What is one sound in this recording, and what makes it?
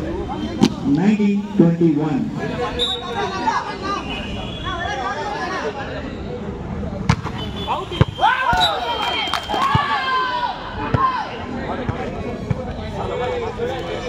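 A crowd of young men chatters and shouts outdoors.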